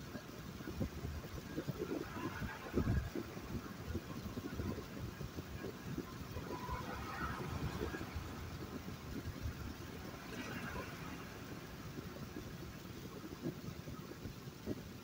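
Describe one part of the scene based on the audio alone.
A car's engine hums and its tyres rumble on the road throughout.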